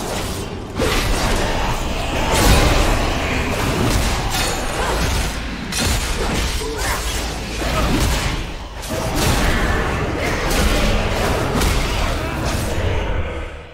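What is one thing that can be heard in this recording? Sword strikes and spell effects clash in a video game battle.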